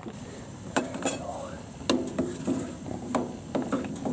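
A metal lid clinks against a pot.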